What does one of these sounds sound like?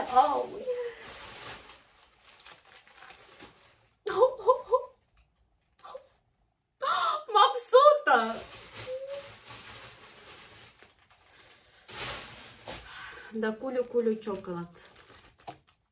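Plastic wrappers crinkle as they are handled.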